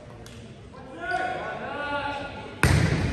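Players call out to each other in a large echoing gym.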